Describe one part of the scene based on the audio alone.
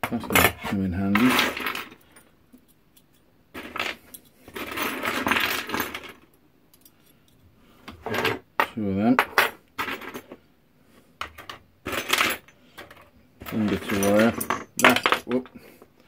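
Small copper pipe pieces clink and rattle together as they are handled.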